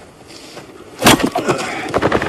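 An axe splits a log with a sharp crack.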